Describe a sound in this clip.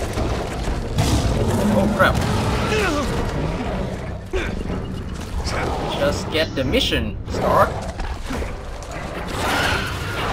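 A large beast snarls and growls close by.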